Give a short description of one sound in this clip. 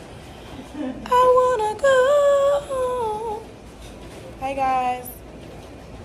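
A young woman sings in a playful voice close by.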